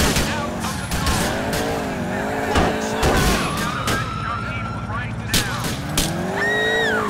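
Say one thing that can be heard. Loud knocks and crashes sound as the car hits things.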